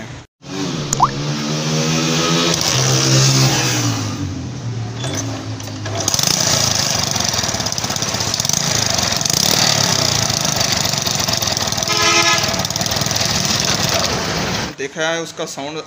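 A motorcycle engine runs with a steady, rattling hum.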